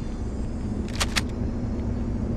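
A shotgun is racked with a sharp metallic click.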